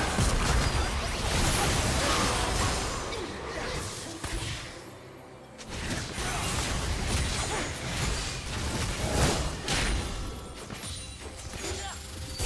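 Magic spells whoosh and burst in a fast fight.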